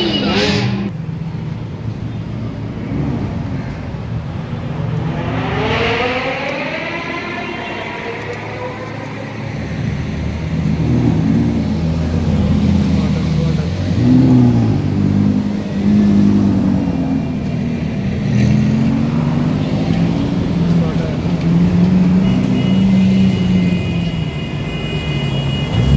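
Sports car engines rumble deeply as they roll slowly past.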